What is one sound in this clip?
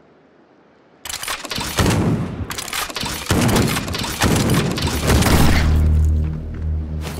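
A game character slashes at an enemy with sharp blows.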